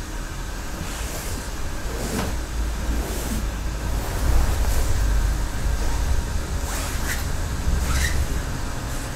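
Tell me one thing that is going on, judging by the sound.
Soft footsteps shuffle across straw mats.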